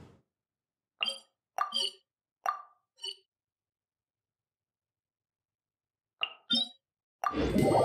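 Short game menu chimes ring out one by one.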